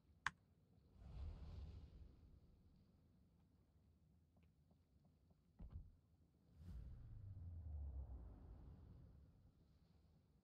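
Deep explosions boom and rumble.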